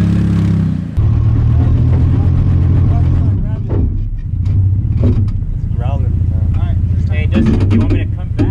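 Tyres grind and crunch over rock.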